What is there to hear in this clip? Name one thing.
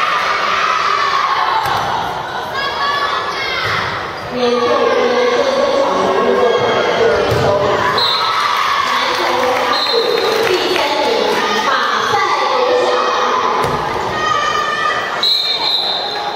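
Young players shout and cheer loudly in a large echoing hall.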